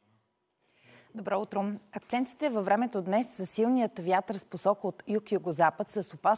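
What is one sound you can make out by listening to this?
A young woman speaks clearly and evenly into a microphone.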